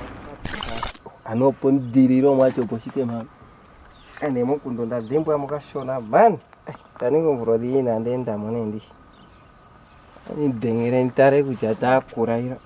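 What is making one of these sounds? A young man speaks with animation close by.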